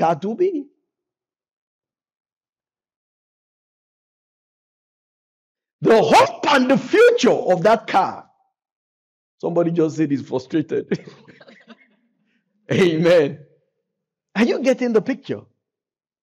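A man speaks with animation into a microphone, in bursts with pauses.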